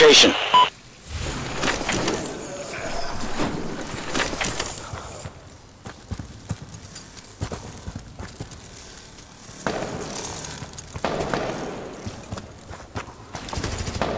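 A machine gun fires in bursts.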